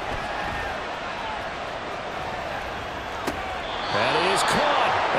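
A large stadium crowd roars steadily, then cheers louder.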